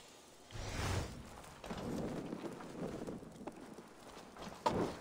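Footsteps rustle through dry brush.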